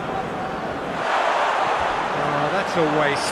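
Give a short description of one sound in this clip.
A stadium crowd roars loudly as a ball is kicked.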